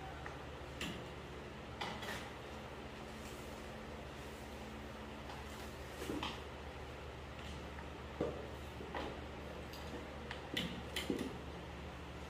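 Utensils clink against dishes on a table.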